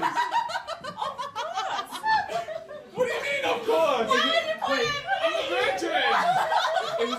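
Young women laugh loudly close by.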